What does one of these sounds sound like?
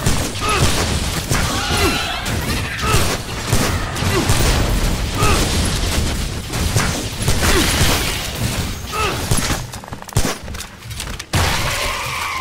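A crossbow fires bolts with sharp twangs, again and again.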